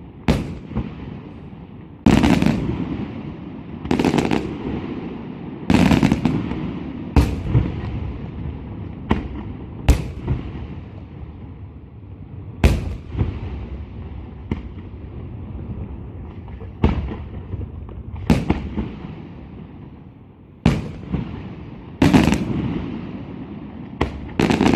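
Fireworks burst with loud booms that echo across the distance.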